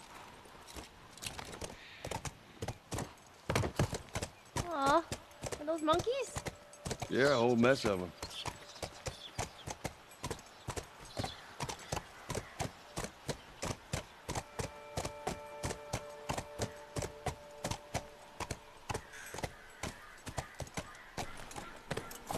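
A horse's hooves clop steadily on hard ground.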